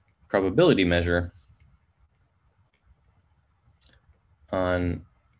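A man speaks calmly through a microphone in short phrases.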